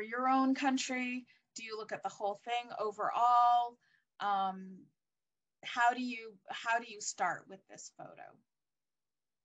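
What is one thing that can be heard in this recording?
An older woman speaks calmly through a microphone, as on an online call.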